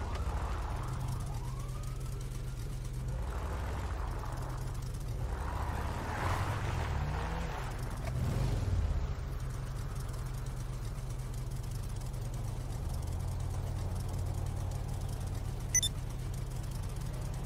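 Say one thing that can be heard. An engine rumbles steadily as an off-road buggy drives.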